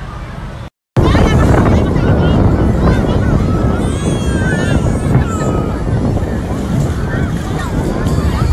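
Small waves splash at the shore.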